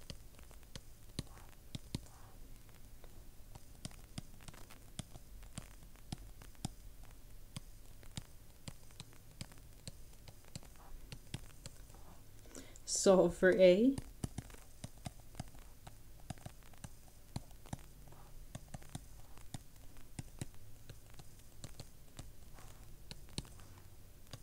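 A stylus taps and clicks on a tablet.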